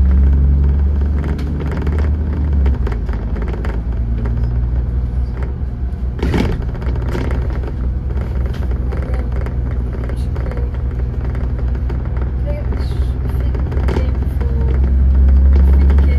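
A bus engine rumbles steadily up close.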